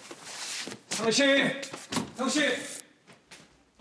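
A man shouts close by.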